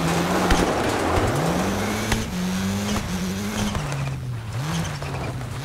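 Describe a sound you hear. A rally car engine roars, shifting up through the gears.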